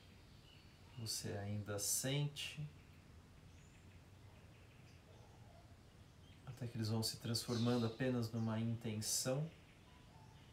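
A young man speaks calmly and slowly, close by.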